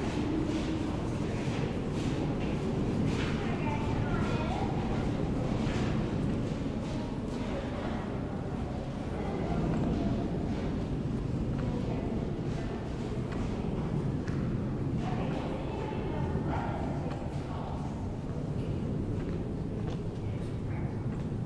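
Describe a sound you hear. Adults talk quietly nearby in a large echoing space.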